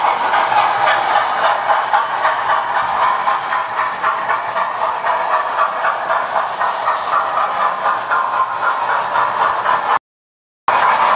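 A model train clatters and rattles along its track.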